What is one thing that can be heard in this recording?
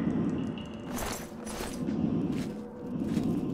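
Bones clatter onto a stone floor.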